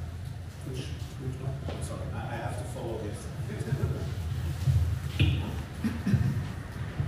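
A man speaks with animation into a microphone, heard through loudspeakers in an echoing hall.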